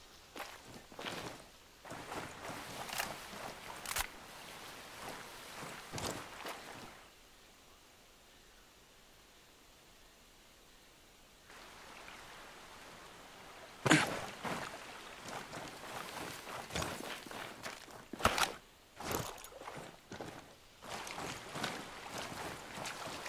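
Footsteps rustle through grass and leaves.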